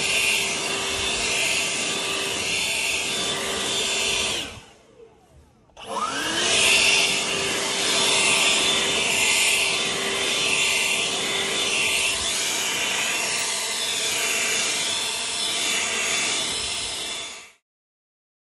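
A leaf blower roars steadily, cutting out briefly and starting up again.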